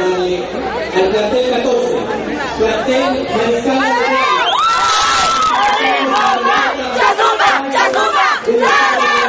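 A dense crowd of people shouts and cheers loudly close by.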